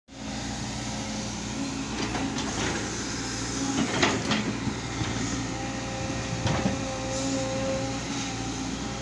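A diesel engine of a digger rumbles and hums steadily nearby.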